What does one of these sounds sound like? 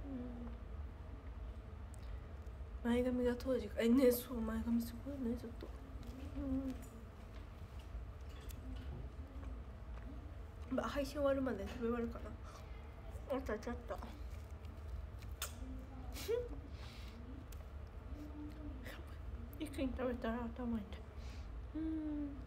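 A young woman talks casually and close by, with pauses.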